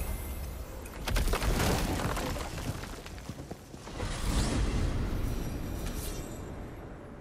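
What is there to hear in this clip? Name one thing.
A magical gateway roars and whooshes open with a bright surge.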